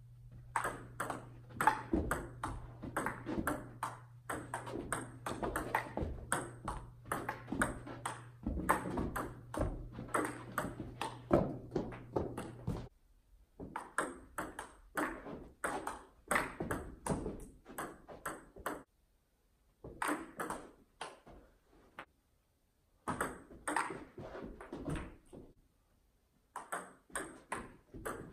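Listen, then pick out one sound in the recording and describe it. A ping-pong ball clicks rapidly back and forth off paddles and a table in an echoing room.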